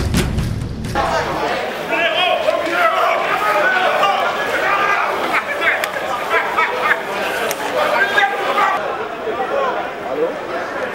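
Several men chatter nearby.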